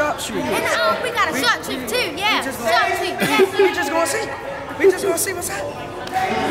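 Two young girls talk excitedly and laugh close to the microphone.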